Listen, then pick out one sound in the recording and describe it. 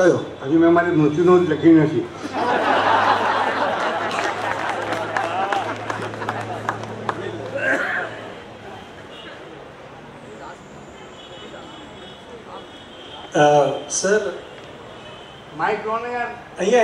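An elderly man speaks slowly into a microphone, heard through loudspeakers.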